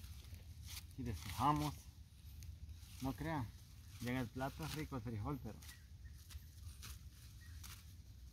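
Leafy plants rustle as they are pulled up and shaken.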